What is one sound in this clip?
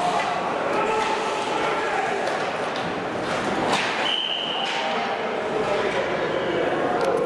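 Spectators chatter and call out in a large echoing rink.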